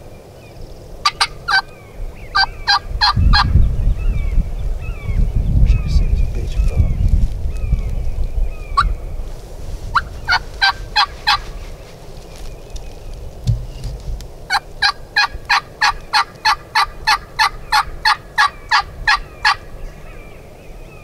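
A wild turkey calls in quick series of sharp, repeated yelps.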